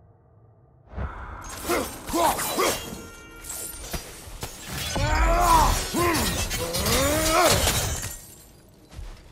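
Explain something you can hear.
Flaming blades on chains whoosh and roar through the air.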